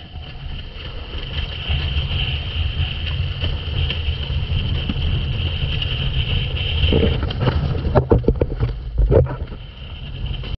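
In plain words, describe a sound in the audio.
Wind rushes loudly over the water outdoors.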